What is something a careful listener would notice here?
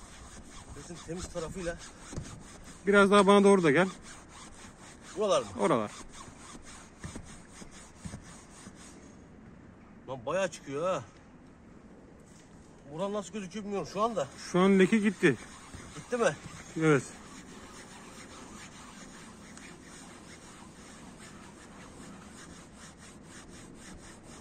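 A cloth rubs softly over a fabric seat.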